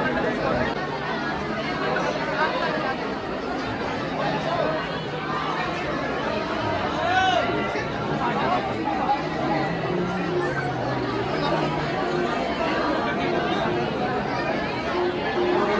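A large crowd murmurs and chatters all around, close by.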